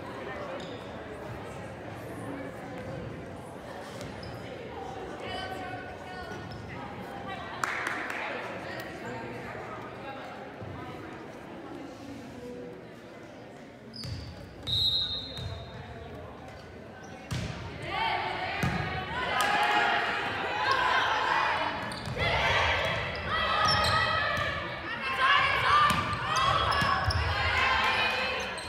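Young women players call out to each other on the court.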